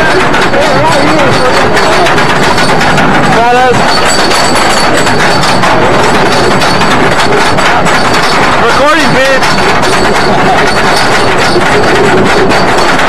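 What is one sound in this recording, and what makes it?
A roller coaster rattles and clatters along its track.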